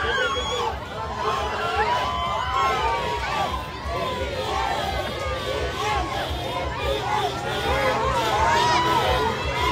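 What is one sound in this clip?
A large crowd outdoors cheers and shouts excitedly.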